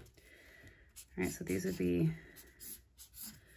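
A marker squeaks across paper.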